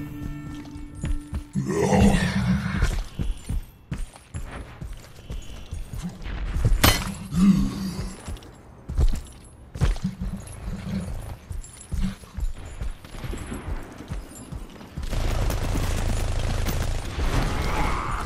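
Heavy metallic footsteps thud steadily.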